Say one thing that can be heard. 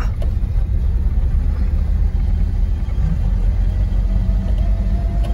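Tyres roll over a rough road.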